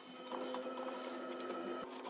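A wooden drawer slides out of a wooden box.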